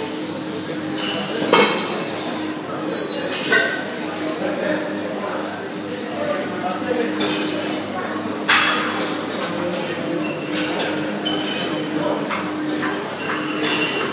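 A cable weight machine clanks and whirs.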